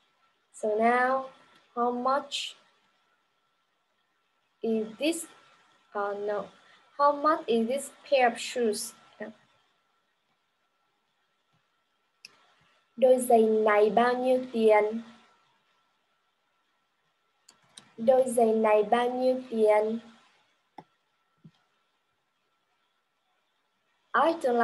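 A young woman speaks clearly and calmly over an online call, pausing between phrases.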